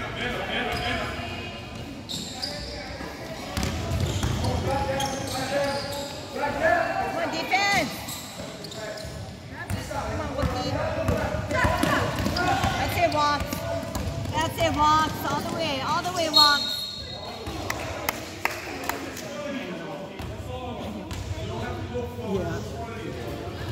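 Young players and spectators shout and call out in a large echoing gym.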